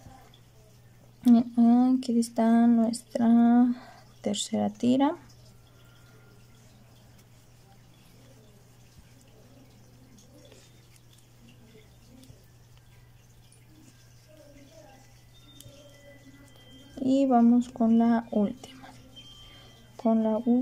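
A crochet hook softly scrapes and tugs through yarn.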